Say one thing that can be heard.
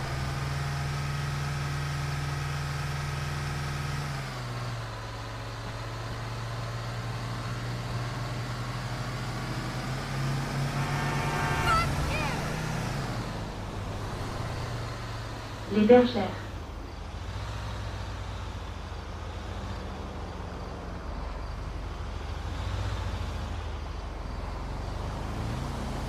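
A heavy engine hums steadily, shifting pitch as the vehicle speeds up and slows down.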